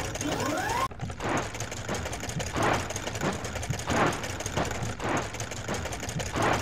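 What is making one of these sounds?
Spinning brushes scrub with rhythmic whooshing sweeps.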